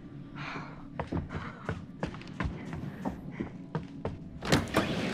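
Footsteps creak on wooden boards.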